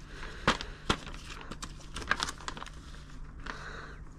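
A plastic bag crinkles as hands handle it.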